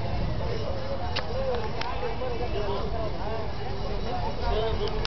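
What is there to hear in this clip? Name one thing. A crowd of men chatters loudly outdoors.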